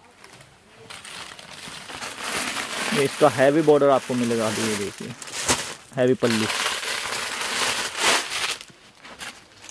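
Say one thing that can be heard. Stiff fabric rustles as it is unfolded and handled.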